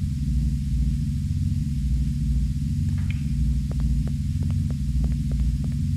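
Footsteps tap steadily along a hard floor.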